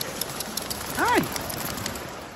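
A dog yelps sharply.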